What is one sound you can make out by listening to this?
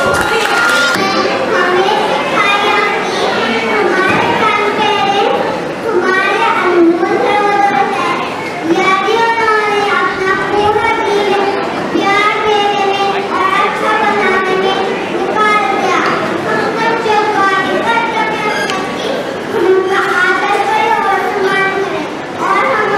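A young girl speaks steadily into a microphone, heard through loudspeakers in an echoing hall.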